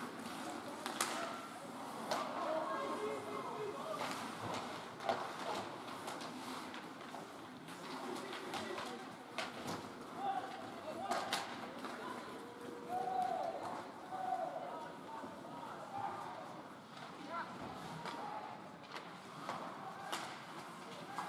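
Hockey sticks strike a puck with sharp cracks.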